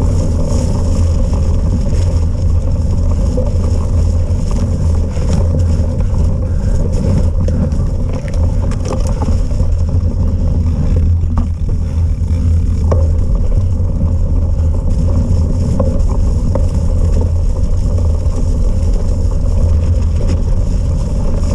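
Tyres roll and bump over a muddy, uneven track.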